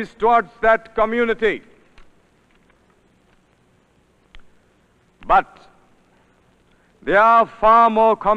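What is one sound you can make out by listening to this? A man gives a speech into a microphone, heard through a loudspeaker in a large hall, pausing between phrases.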